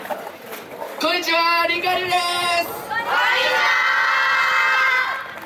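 A group of young women shout long, drawn-out calls in unison.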